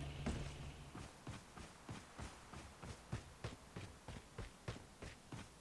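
Footsteps tread quickly in an even rhythm.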